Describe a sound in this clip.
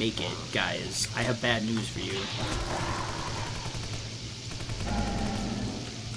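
A rifle fires bursts of gunshots.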